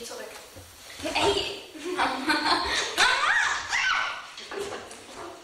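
A girl laughs loudly.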